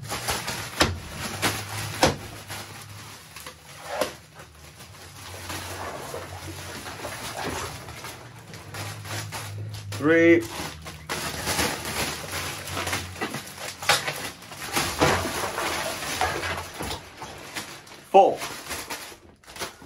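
A plastic bag crinkles.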